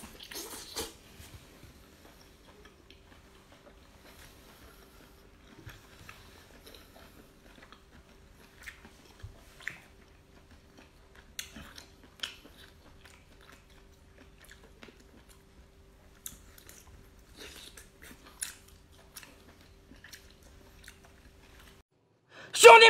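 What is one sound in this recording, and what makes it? A young man slurps and chews food with wet smacking sounds.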